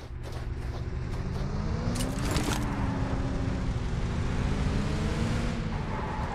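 A truck engine roars and revs as it drives.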